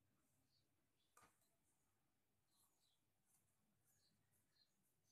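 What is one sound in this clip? Fabric rustles softly as it is folded.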